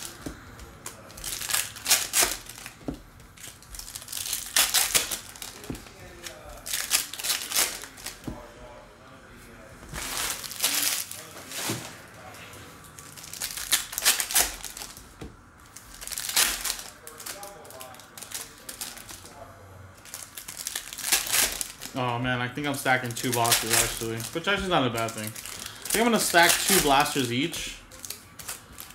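Plastic foil wrappers crinkle and rustle up close.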